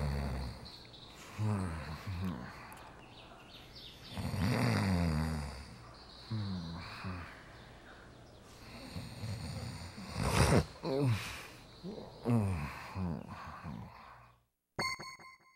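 A man groans in pain close by.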